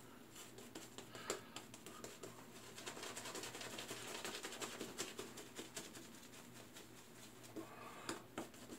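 A man rubs shaving foam on his face with his hand, squishing and scratching close by.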